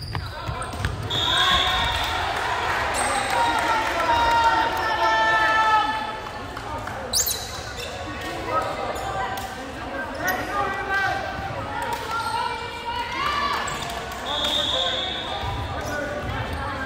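A crowd of young people cheers and shouts.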